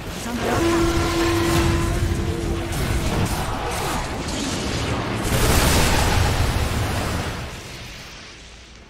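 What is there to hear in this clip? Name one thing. Magic blasts and crackling spell effects roar loudly in a fight.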